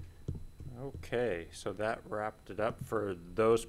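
A young man speaks calmly through a microphone in a large room.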